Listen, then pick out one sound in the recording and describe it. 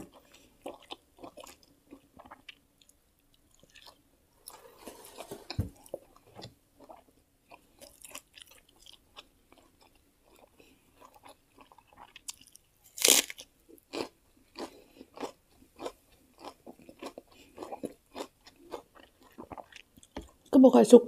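A woman chews food loudly and smacks her lips.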